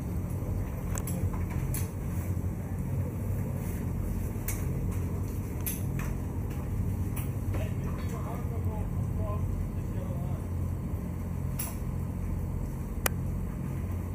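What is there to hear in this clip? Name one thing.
Equipment knocks and clicks now and then as workers handle a stretcher.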